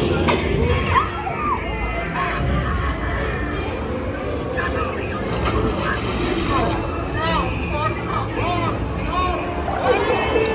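Lively music plays through loudspeakers.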